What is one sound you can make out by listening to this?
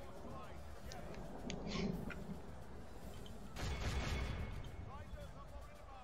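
A battle rumbles in the distance with faint clashing of weapons.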